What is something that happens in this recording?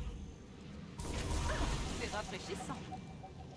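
A magic spell bursts with a loud whoosh and crackle.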